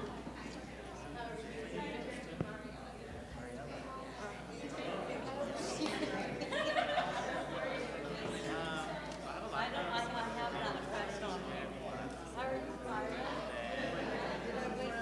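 A young woman speaks calmly into a microphone, heard through loudspeakers in a large room.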